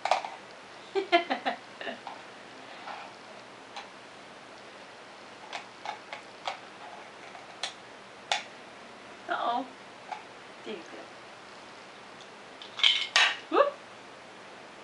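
An elderly woman talks softly and warmly, close by.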